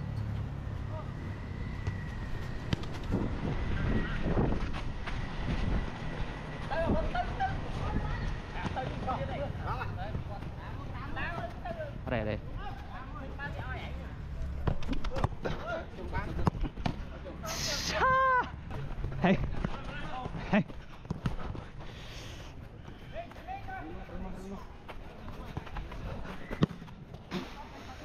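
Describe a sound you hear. Footsteps run on artificial turf.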